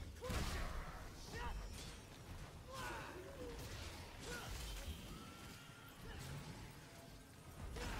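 Swords slash and strike with sharp whooshing hits.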